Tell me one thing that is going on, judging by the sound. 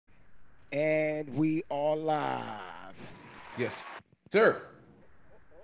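A man sings short melodic phrases into a microphone, heard over an online call.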